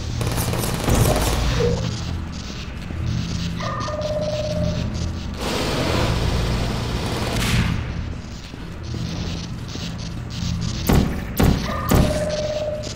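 A sci-fi gun fires with short electronic zaps.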